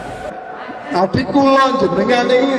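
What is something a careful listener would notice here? A man speaks loudly in an echoing room.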